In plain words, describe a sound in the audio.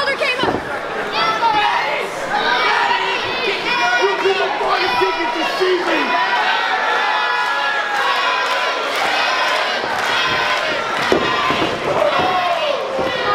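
A wrestler thuds onto the ring mat.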